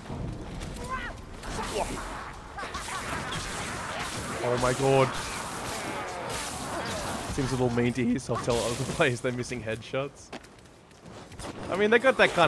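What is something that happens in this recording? Creatures snarl and screech in a fight.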